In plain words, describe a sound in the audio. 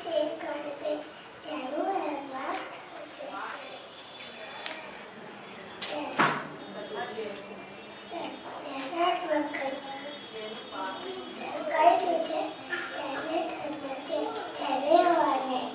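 A young girl speaks into a microphone, reciting with expression.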